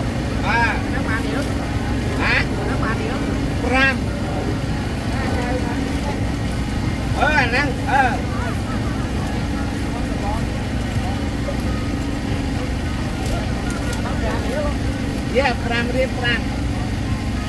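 People talk in an outdoor crowd nearby.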